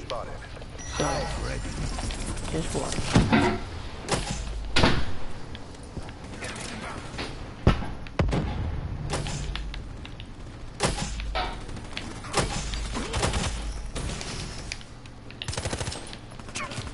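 Gunshots ring out in short, sharp bursts.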